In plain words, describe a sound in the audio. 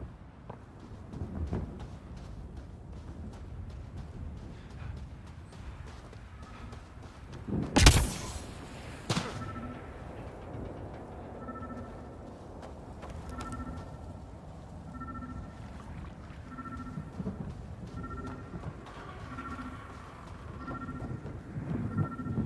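Footsteps crunch on sand at a run.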